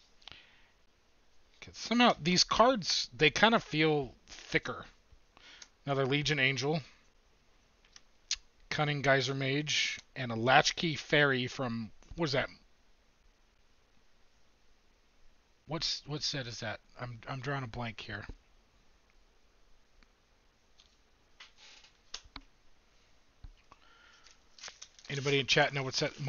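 Playing cards rustle and slide in a man's hands.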